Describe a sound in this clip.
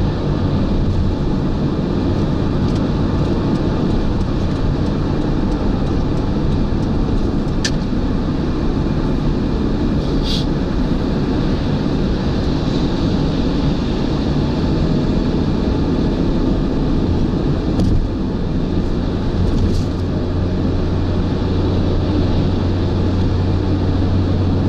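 A car engine hums steadily, with loud road and wind noise inside the car.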